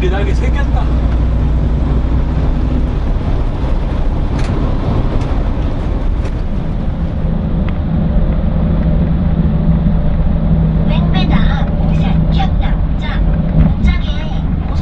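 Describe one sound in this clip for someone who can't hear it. Tyres roll over the road with a steady hum.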